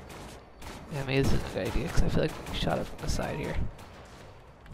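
Heavy gunfire rattles in loud bursts.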